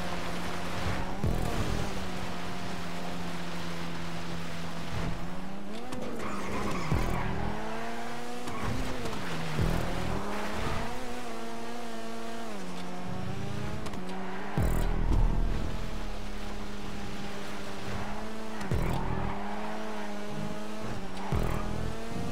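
A race car engine roars steadily, rising and falling in pitch as it shifts gears.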